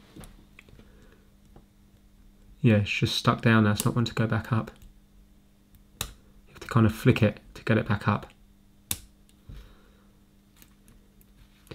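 A small plastic switch clicks under a fingertip.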